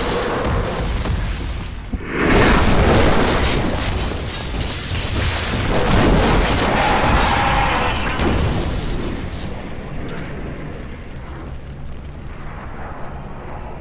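Flames roar.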